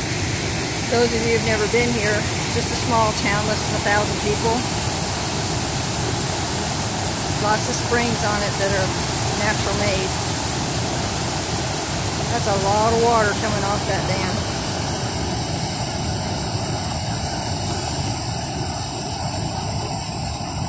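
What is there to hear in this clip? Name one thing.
A waterfall roars steadily over a weir.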